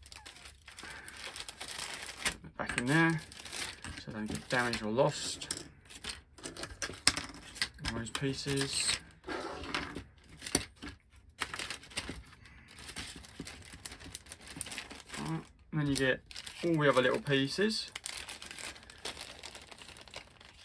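A plastic bag rustles and crinkles in someone's hands.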